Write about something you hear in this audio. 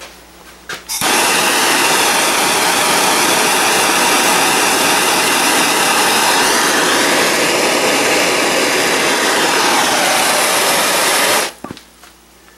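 A gas torch roars steadily and loudly.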